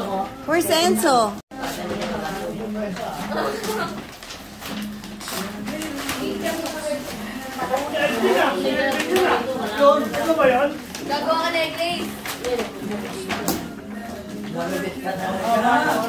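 Children talk and call out excitedly nearby.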